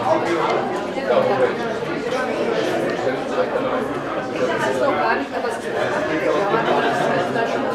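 A woman speaks up loudly to the crowd.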